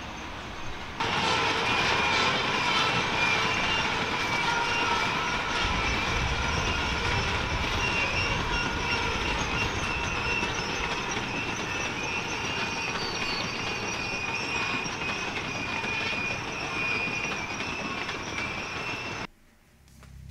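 A freight train rolls past outdoors with a steady rumble.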